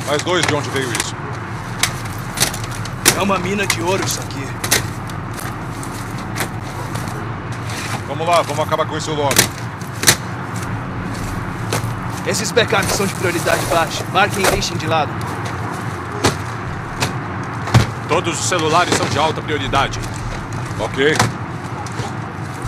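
A young man talks casually into a microphone.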